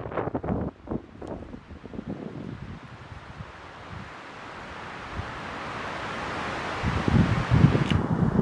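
Wind gusts rumble outdoors.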